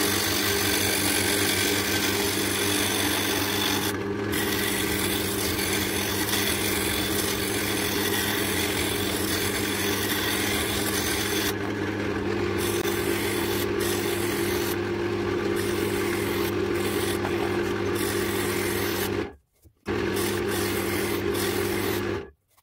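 A chisel scrapes against spinning wood with a rough hiss.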